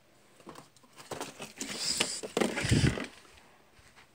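A sliding closet door rolls along its track and bumps shut.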